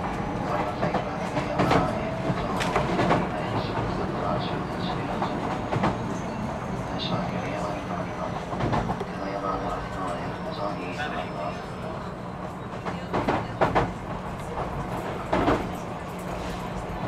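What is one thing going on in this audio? A train's motors hum steadily while it stands idling.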